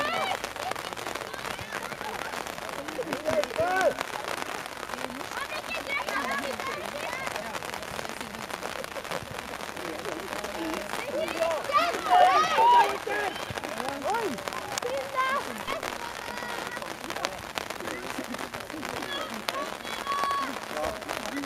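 Young girls shout and call out to each other outdoors.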